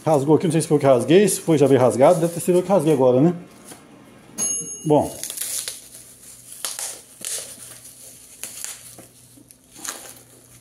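Plastic wrap crinkles and rustles as hands handle a small box.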